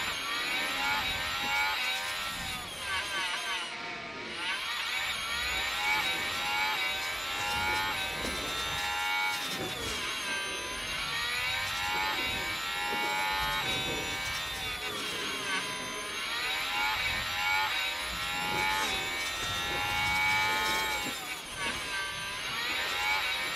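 A racing car engine screams at high revs, rising and falling as the car shifts gears and brakes through corners.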